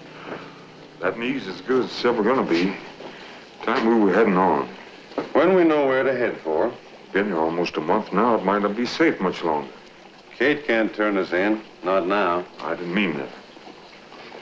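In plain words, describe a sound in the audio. An elderly man talks with animation, close by.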